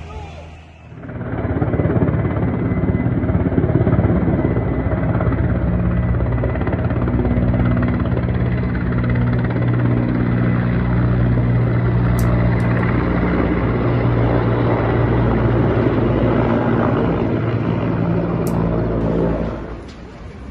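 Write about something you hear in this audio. A twin-turbine transport helicopter flies over with a droning rotor.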